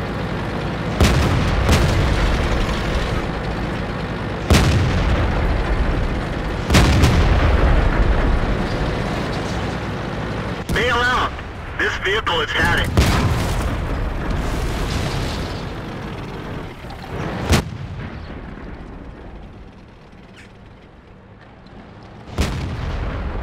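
Tank cannons fire with sharp booms.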